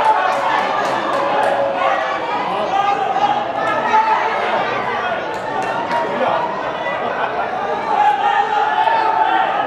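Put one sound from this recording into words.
Several young men shout and argue at a distance outdoors.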